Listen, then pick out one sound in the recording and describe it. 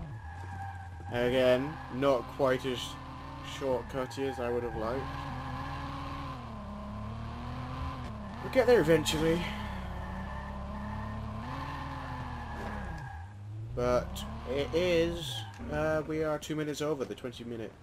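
Tyres screech as a car skids.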